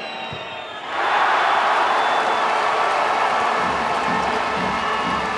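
A crowd roars loudly.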